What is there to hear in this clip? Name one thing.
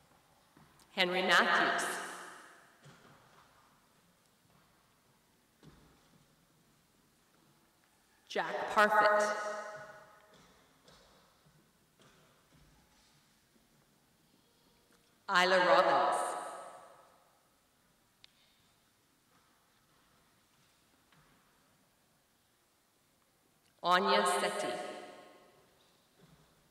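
A woman calls out names one at a time through a microphone in an echoing hall.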